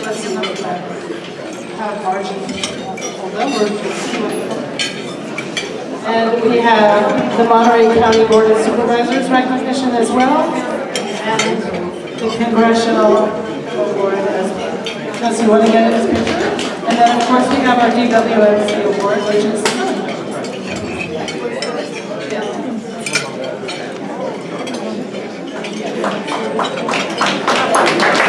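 A woman speaks with animation into a microphone, heard over a loudspeaker in a room with some echo.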